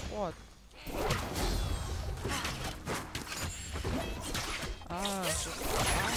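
Blades clash and hit in a brawl.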